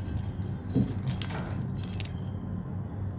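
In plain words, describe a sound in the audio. A crisp crepe crackles as fingers tear it.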